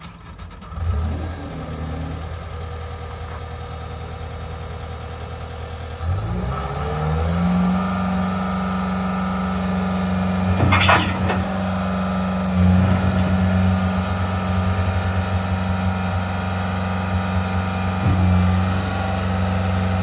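A diesel engine starts up, idles and then revs higher.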